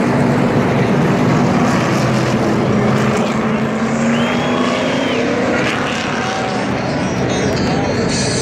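Race car engines roar loudly as the cars speed past.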